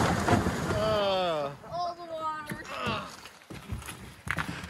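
A boat's hull scrapes onto gravel.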